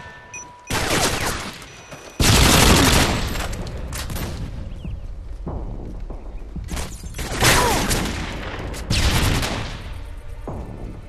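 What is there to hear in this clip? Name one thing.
Rifle gunfire rings out in loud bursts, with echoing blasts.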